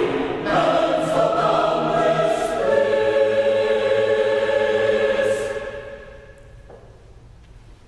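A choir sings a sustained final chord in a large echoing hall, and the sound rings out and fades.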